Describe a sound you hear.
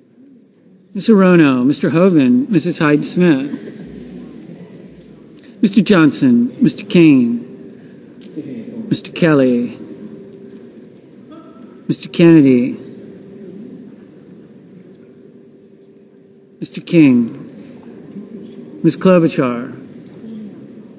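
A man reads out aloud through a microphone in a large echoing hall, in short bursts with pauses between.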